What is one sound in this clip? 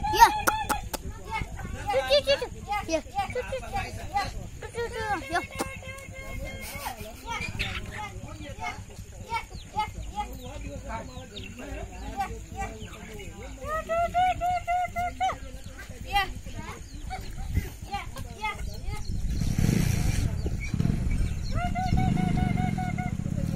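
Chickens cluck and chirp nearby.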